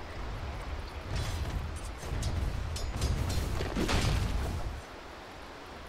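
Fantasy battle sound effects clash and burst in quick succession.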